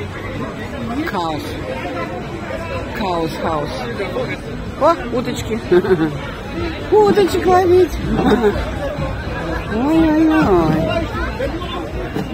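Men and women talk nearby with animation.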